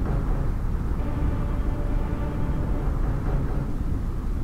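Fires roar and crackle.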